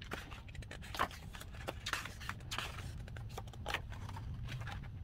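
Glossy paper pages of a booklet flip and rustle.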